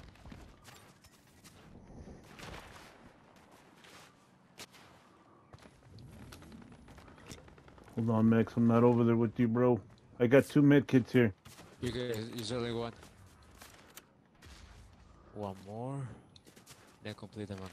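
Footsteps run quickly over snow and grass.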